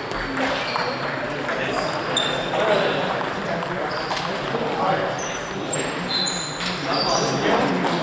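Table tennis balls click sharply on paddles and tables, echoing in a large hall.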